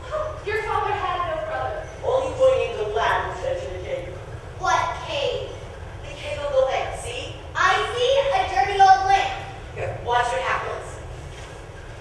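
A young girl speaks with animation from a stage, heard from the audience.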